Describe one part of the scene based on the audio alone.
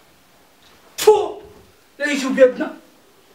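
A young man shouts loudly close by.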